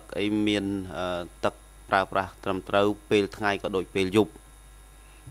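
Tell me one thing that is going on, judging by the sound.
A man speaks through a microphone in a formal tone.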